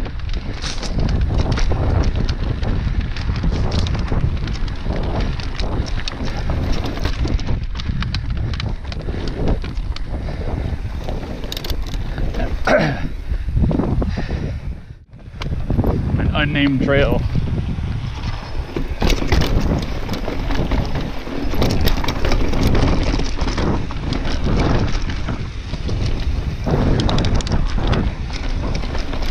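Bicycle tyres rumble and crunch over dirt and rock.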